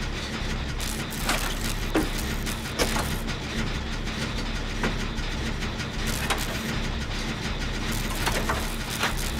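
A generator rattles and clanks steadily with sharp metallic clicks.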